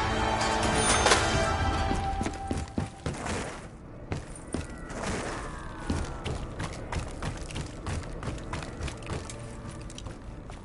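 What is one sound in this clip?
Footsteps thud quickly on the ground.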